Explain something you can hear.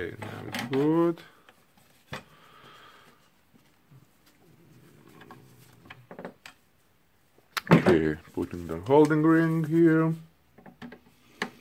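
Hard plastic parts of a power tool click and knock as they are handled.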